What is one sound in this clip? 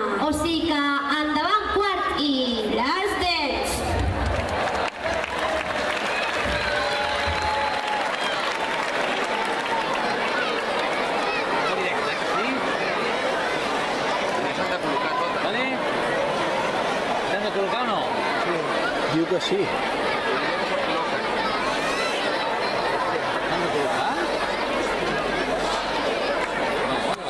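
A large crowd of children chatters and cheers.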